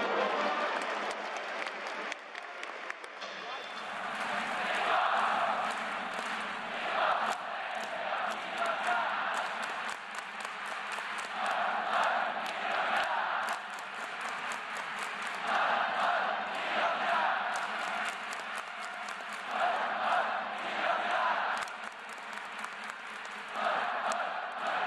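A large stadium crowd chants and cheers in rhythmic bursts.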